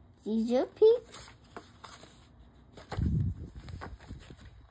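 A book's paper pages rustle as they are turned.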